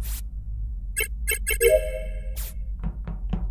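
Electronic beeps chime in quick succession.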